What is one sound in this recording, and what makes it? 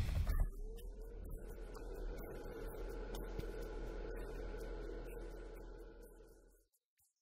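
A mixed-flow inline duct fan hums.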